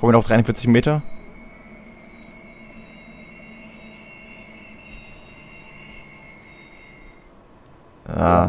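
Brakes squeal softly as a train slows to a stop.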